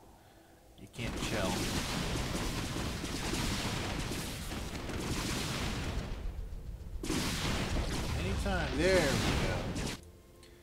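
Rapid gunfire rattles in dense bursts.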